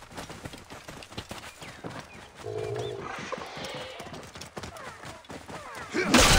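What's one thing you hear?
A horse's hooves gallop over the ground.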